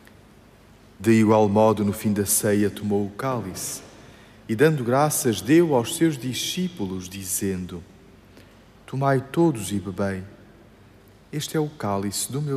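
A man sings a chant through a microphone in a large echoing hall.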